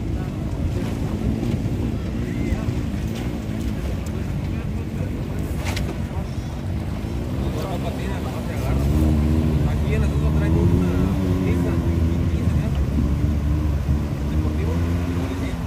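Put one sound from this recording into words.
Water splashes and sloshes around tyres driving through a river.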